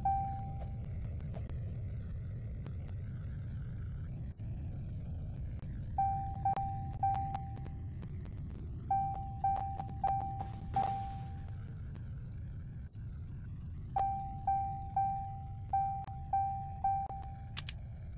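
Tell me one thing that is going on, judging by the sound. Short electronic chimes ring in quick bursts.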